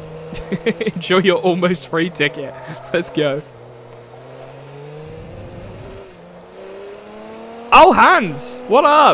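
A racing car engine drones and whines, rising in pitch as it speeds up.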